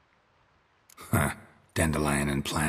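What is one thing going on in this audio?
A man answers in a low, calm voice, close by.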